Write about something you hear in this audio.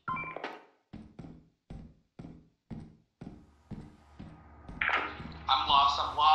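Footsteps thud on a concrete floor.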